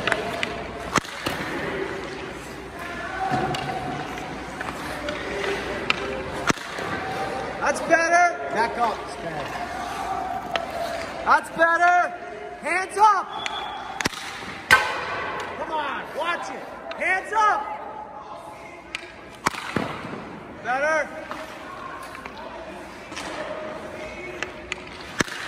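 A hockey stick slaps pucks in sharp cracks.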